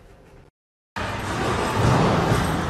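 A bowling ball rumbles down a lane in a noisy hall.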